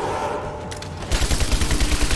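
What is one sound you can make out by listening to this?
A rifle fires a rapid burst of shots.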